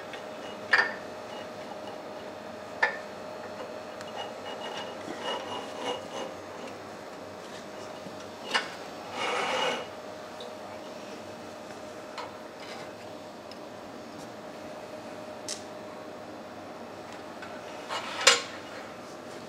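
Metal parts of a machine clank and knock.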